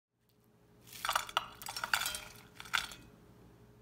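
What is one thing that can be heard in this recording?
A metal strainer scrapes and clinks against a plate.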